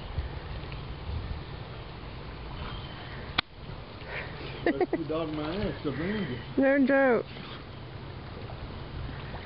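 Water splashes and laps as a dog swims.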